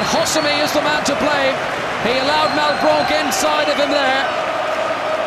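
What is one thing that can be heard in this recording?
A large stadium crowd chants and sings loudly.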